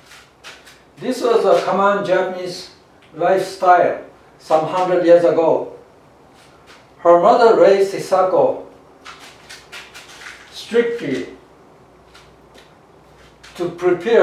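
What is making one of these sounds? A middle-aged man narrates with animation, close by.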